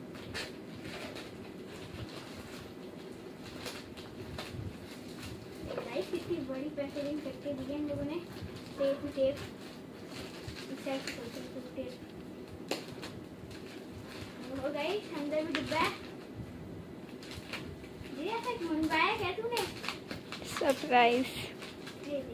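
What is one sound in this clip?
Plastic packaging crinkles and rustles as it is torn open.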